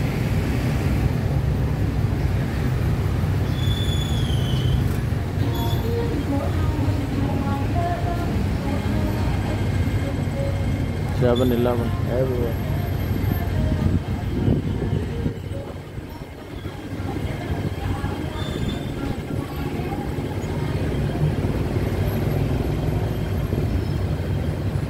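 Traffic hums and passes close by outdoors.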